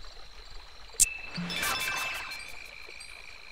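Electronic game sound effects chime and jingle.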